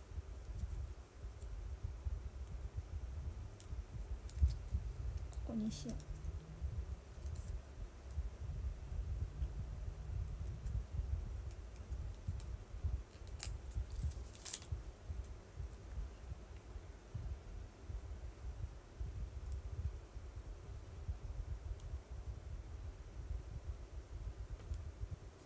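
Small objects click faintly as fingers handle them.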